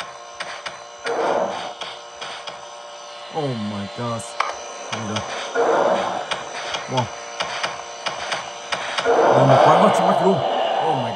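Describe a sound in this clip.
Eerie game sounds play loudly from a tablet's speaker.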